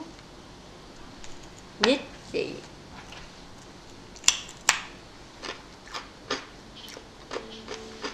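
A crisp snack crunches as a young woman bites and chews.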